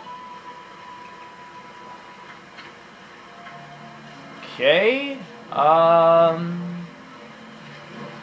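Soft video game music plays through a television speaker.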